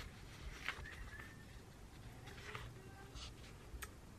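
Book pages rustle as they are flipped.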